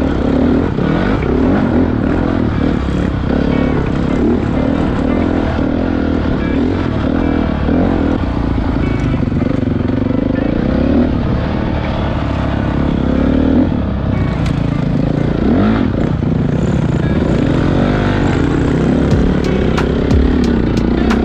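Tyres crunch and skid over dirt and gravel.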